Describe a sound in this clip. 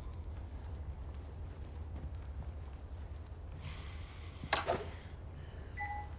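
A small device beeps steadily in quick, even pulses.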